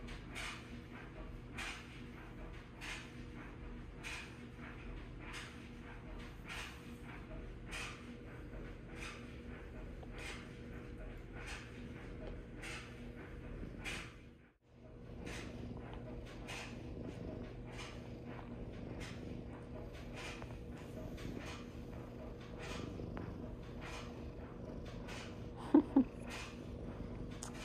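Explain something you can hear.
A cat purrs steadily and close by.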